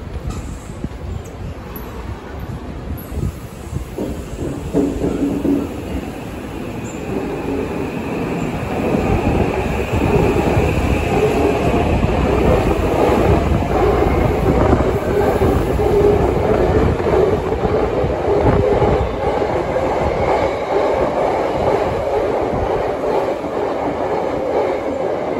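An underground train pulls in with a low rumble that grows louder.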